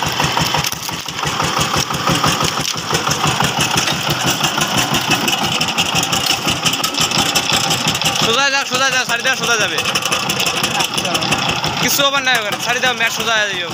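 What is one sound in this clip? A small diesel engine chugs rapidly and steadily, close by.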